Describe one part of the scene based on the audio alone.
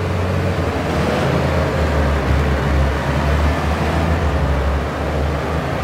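A van engine rumbles as the van drives past.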